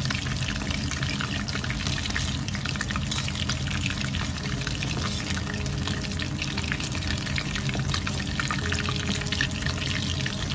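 Hot oil sizzles and crackles steadily around frying food.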